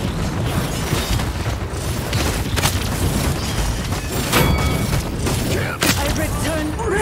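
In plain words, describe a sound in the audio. Gunfire and explosions from a video game crackle and boom.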